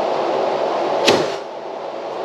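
A nail gun fires once with a sharp bang.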